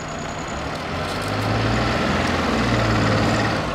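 A car engine starts and idles.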